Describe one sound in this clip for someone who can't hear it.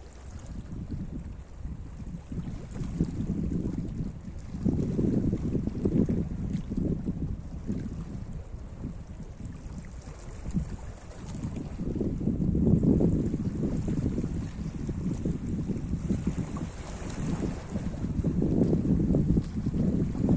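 Small waves lap and wash over rocks at the shore.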